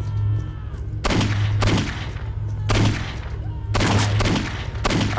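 A pistol fires loud shots in quick bursts.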